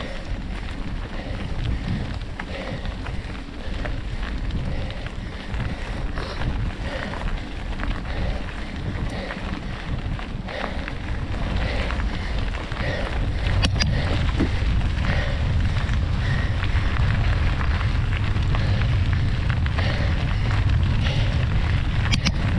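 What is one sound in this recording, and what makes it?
A bicycle chain and frame rattle over bumps.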